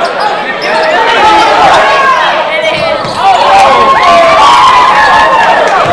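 A group of young women chant loudly together.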